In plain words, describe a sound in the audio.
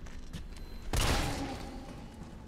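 A gunshot fires sharply with a short echo.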